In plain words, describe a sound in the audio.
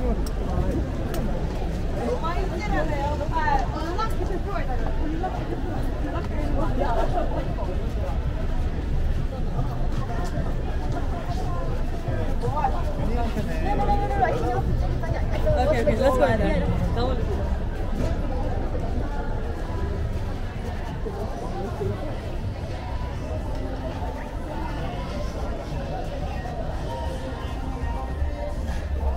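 Footsteps tap on pavement close by.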